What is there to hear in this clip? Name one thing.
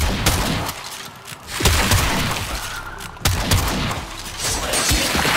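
Gunshots fire in bursts with loud, sharp cracks.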